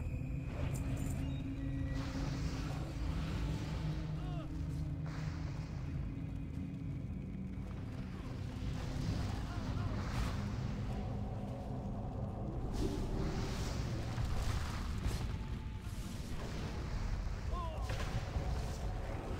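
Magic spells whoosh and burst in fiery blasts during a game battle.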